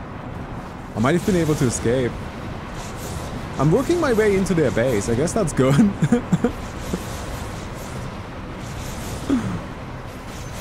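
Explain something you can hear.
A young man talks excitedly and close to a microphone.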